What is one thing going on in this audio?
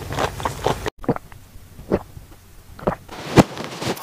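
A spoon scrapes through soft cream in a cup.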